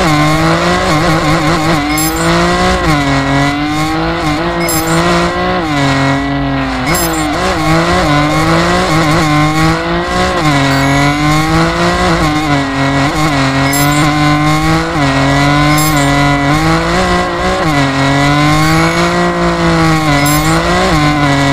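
A car engine revs up and down hard.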